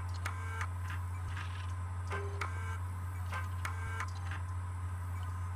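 Electronic beeps sound as menu entries are selected on a computer terminal.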